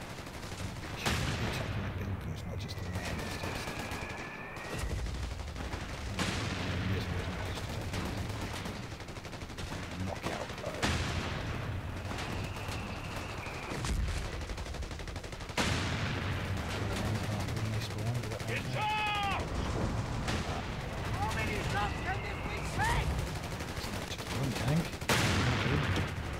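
Heavy guns fire with loud booming blasts.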